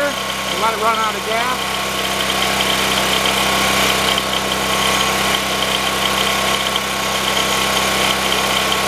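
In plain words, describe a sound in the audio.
A generator engine runs with a steady drone outdoors.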